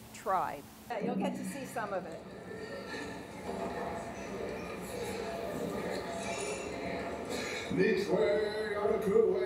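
A man sings through a loudspeaker in a room.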